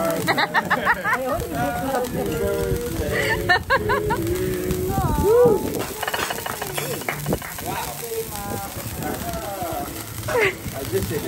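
A group of people sing together close by.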